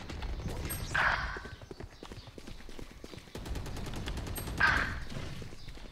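A rifle fires sharp, echoing shots.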